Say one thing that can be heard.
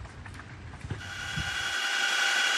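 A helicopter engine drones loudly from inside the cabin.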